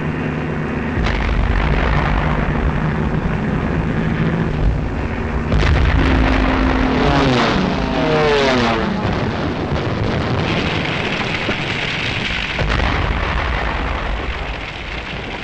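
Bombs explode with a deep rumble.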